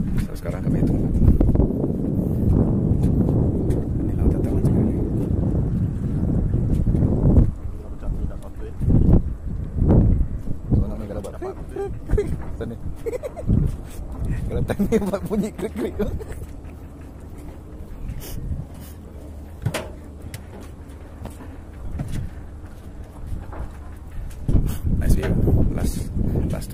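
A young man talks casually close to the microphone.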